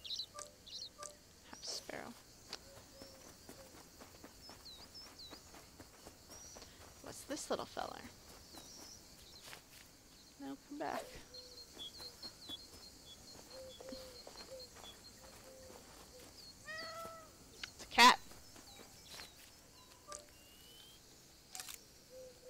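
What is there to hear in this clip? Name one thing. Small birds chirp and tweet.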